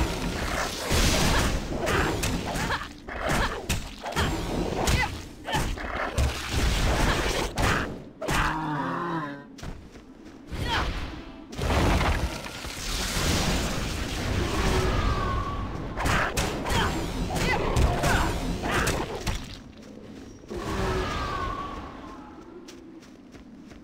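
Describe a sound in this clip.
Spells crackle and burst in quick succession.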